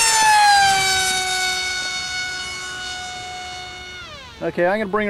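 A jet engine whines loudly overhead, its pitch sliding down as it passes and fades.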